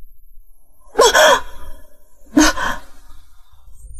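A young woman groans in pain.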